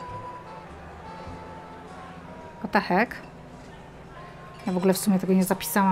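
Glasses clink softly on a tray.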